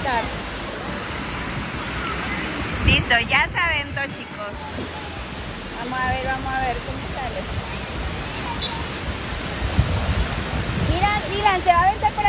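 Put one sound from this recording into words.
Water gushes and splashes steadily down the slides.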